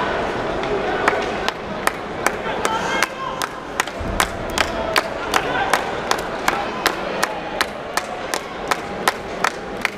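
A crowd claps in a steady rhythm.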